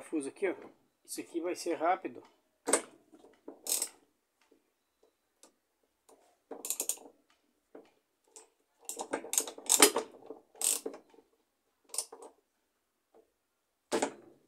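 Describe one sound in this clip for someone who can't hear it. A ratchet wrench clicks as a nut is turned.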